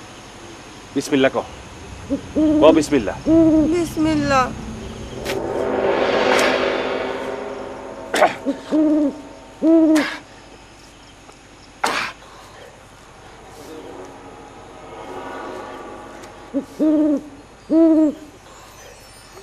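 A woman sobs and wails nearby.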